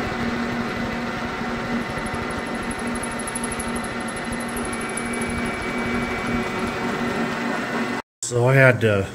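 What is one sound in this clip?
A metal lathe whirs steadily as it spins.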